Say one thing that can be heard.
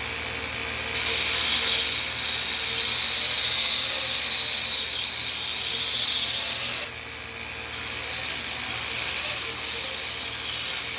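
A belt sander grinds loudly against wood.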